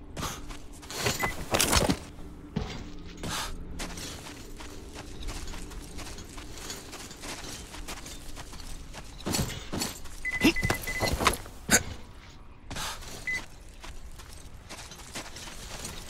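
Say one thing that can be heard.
Footsteps crunch through dry grass and dirt.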